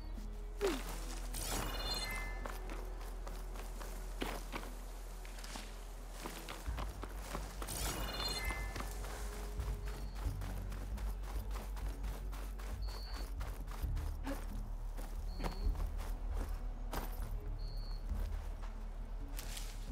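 Footsteps crunch on dry ground and rock.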